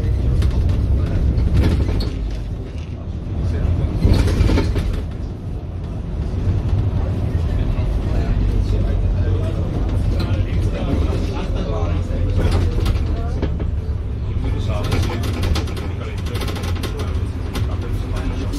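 Traffic passes by on a road.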